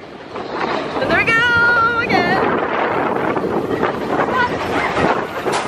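A roller coaster rumbles and rattles loudly along its track.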